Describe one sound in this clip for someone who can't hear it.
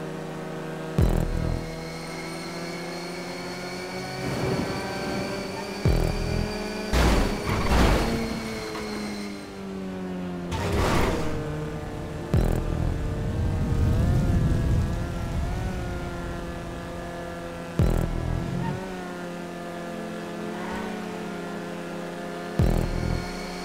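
A car body thuds as it lands and bumps.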